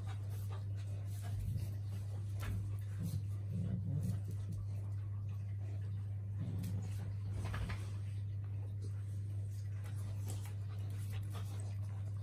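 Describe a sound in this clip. Dogs scuffle and paw at each other on a floor.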